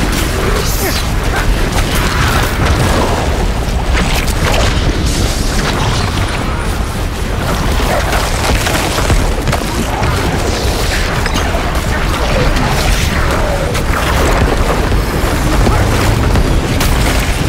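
Video game combat sounds of spells and blows crash and clatter constantly.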